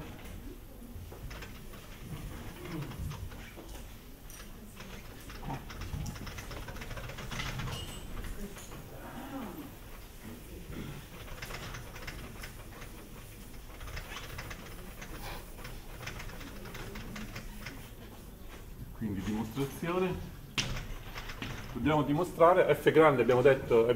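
A man lectures loudly and with animation, close by.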